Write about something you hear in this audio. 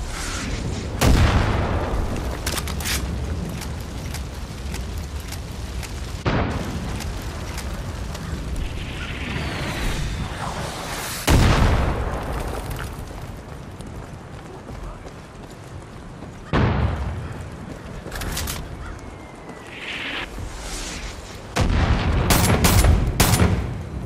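Gunshots boom loudly, with echoes ringing after them.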